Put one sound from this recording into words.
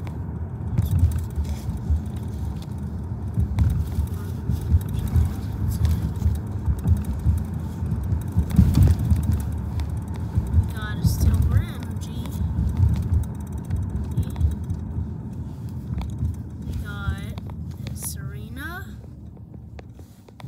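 Trading cards rustle and flick in hands.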